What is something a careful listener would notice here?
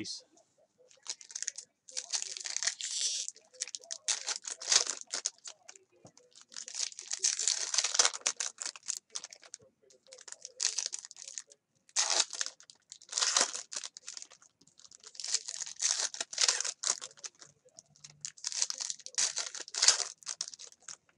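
Foil card packs crinkle and tear as they are ripped open.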